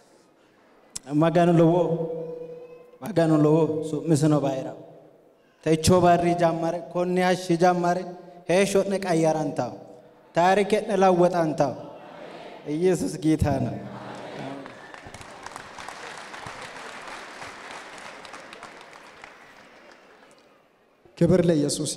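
A young man speaks with animation through a loudspeaker in a large echoing hall.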